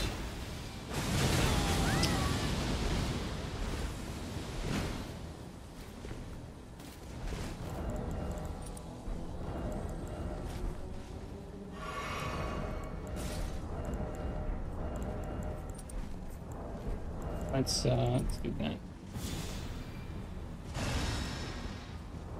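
Flames burst and roar in short whooshes.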